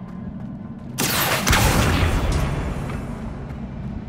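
A loud rushing whoosh bursts out and slowly fades.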